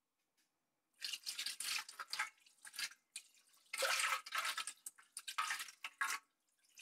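Water hisses and sizzles loudly on hot metal.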